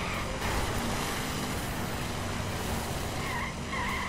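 A car crashes through bushes and branches.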